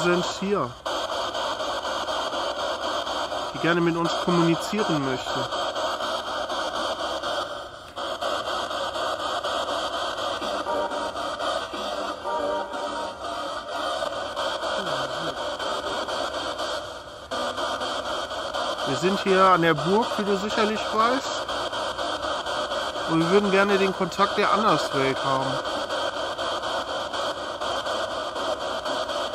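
A ghost box radio hisses with a constant rushing static.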